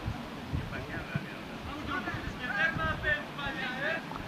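Football players shout to each other across an open field outdoors.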